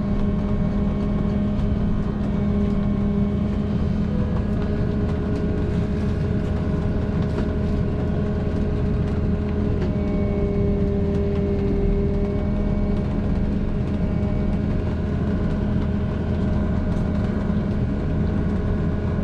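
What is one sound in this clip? A bus engine hums steadily from inside.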